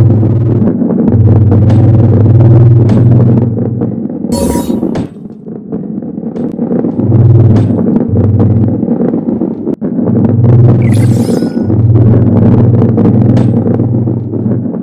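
A heavy ball rumbles as it rolls along a wooden track.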